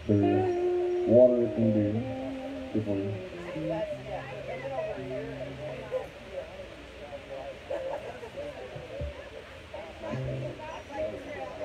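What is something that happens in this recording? An electric guitar plays a few loud, sustained notes.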